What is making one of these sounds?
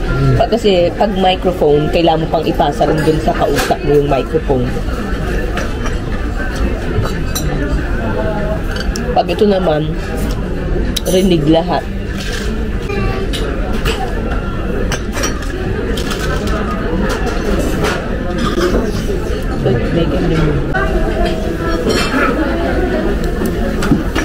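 Chopsticks click against plates.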